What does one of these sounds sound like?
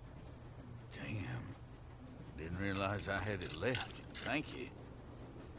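An elderly man speaks in a raspy, friendly voice.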